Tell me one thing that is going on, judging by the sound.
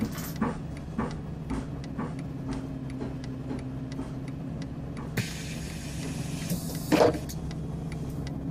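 A bus engine idles with a low, steady hum.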